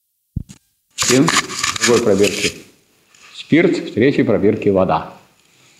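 An elderly man lectures calmly.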